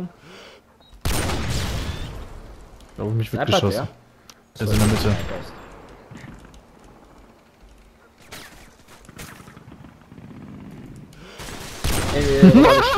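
A rifle fires loud single shots that echo briefly.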